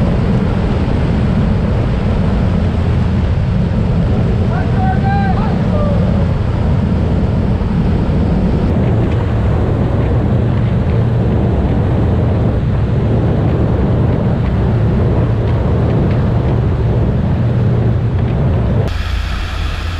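Wind roars loudly past an open aircraft door.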